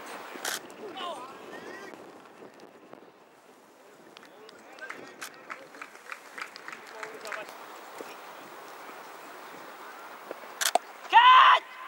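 A cricket bat strikes a ball with a sharp crack outdoors.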